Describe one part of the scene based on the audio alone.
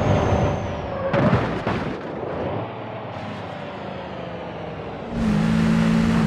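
A bus crashes into a wall with a loud crunch.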